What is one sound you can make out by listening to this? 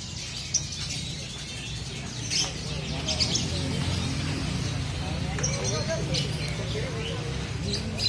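Small caged birds chirp and trill sharply.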